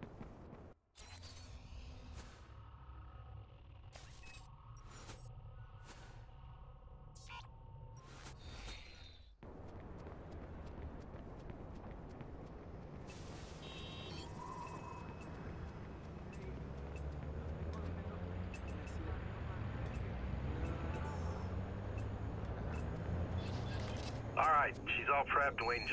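Menu clicks and beeps sound in quick succession.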